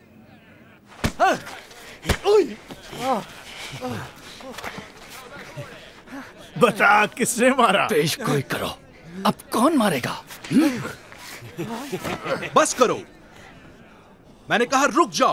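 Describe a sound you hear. Several men jeer and shout mockingly.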